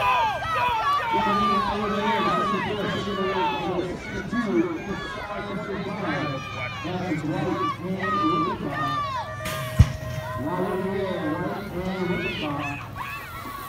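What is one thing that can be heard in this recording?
A crowd of children and adults cheers and shouts outdoors.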